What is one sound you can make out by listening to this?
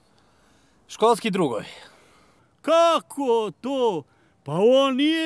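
A man speaks close by with animation.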